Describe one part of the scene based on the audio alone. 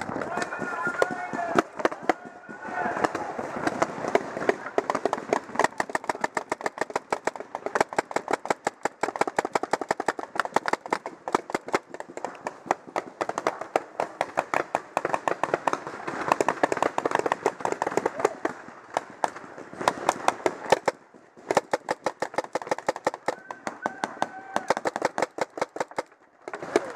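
Paintball markers fire in rapid bursts of sharp pops.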